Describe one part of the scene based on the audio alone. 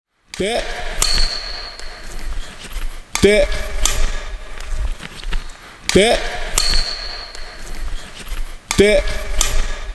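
A racket strikes a shuttlecock with a sharp snap.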